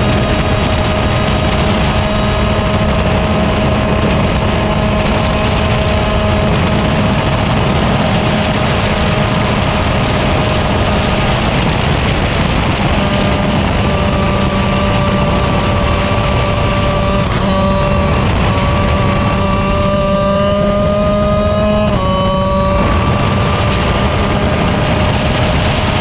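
Wind rushes past steadily outdoors.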